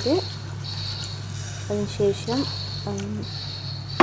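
Water pours into a pot of simmering sauce.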